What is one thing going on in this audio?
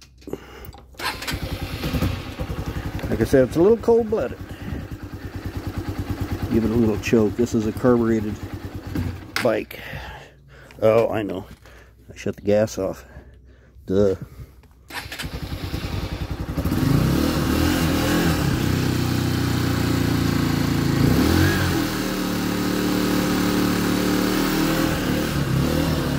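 A small motorcycle engine idles close by with a fast, steady putter, then runs louder.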